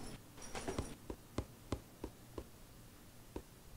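Footsteps patter at a steady pace.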